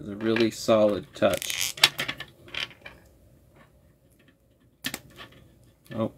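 Plastic parts of a toy click as they are fitted together.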